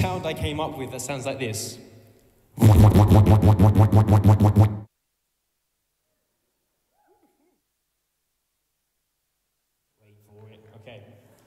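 A young man announces energetically through a microphone and loudspeakers in a large echoing hall.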